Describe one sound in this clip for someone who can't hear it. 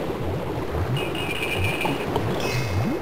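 A short ringing pickup chime sounds in a retro video game.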